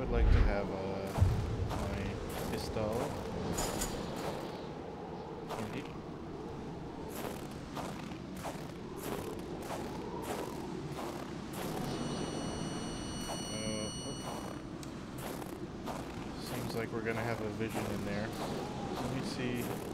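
Strong wind howls steadily through a snowstorm.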